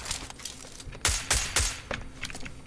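A rifle fires a few loud single shots.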